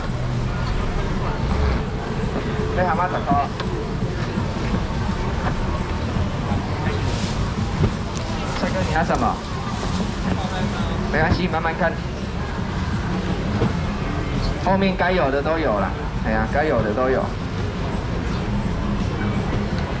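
Cardboard boxes thud and rustle as they are moved.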